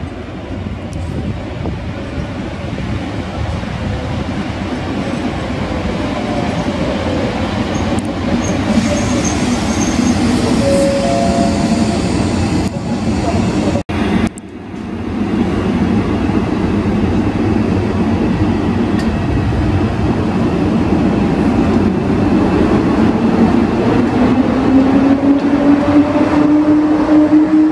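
Train wheels rumble and squeal on the rails.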